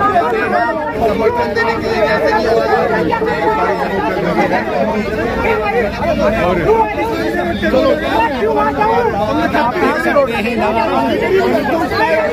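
A crowd of men shout and talk over one another close by.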